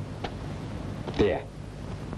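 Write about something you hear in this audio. A young man asks a question.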